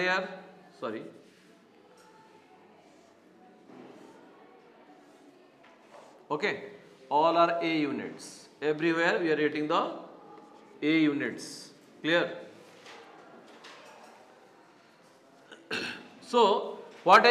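A man speaks calmly and clearly, close by, with pauses.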